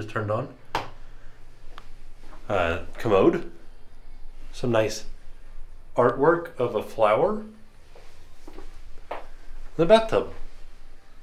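A man talks calmly close by, in short phrases.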